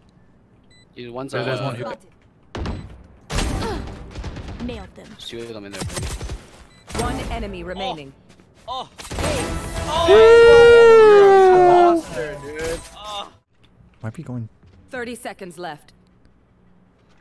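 A young man talks excitedly into a microphone.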